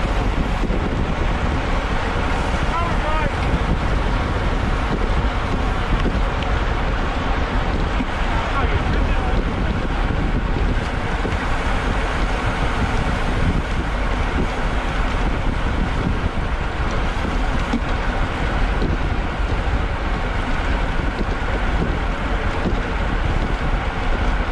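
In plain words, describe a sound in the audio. Strong wind roars across the microphone while riding.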